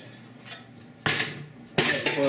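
A metal disc clanks down onto a hard surface.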